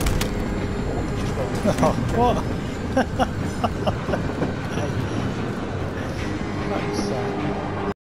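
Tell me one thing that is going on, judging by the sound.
A train car rumbles and clatters steadily along rails.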